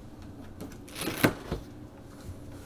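A refrigerator door opens with a soft thud.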